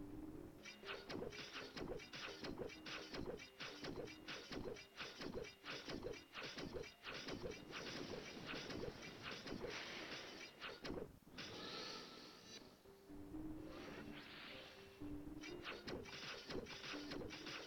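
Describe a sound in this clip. Quick magical attack sound effects strike again and again.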